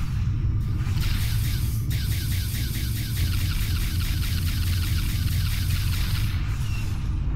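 Rapid laser shots fire in quick bursts.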